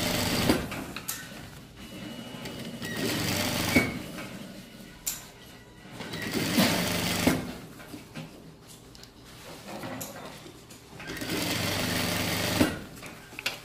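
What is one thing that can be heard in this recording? A sewing machine hums and stitches in short bursts.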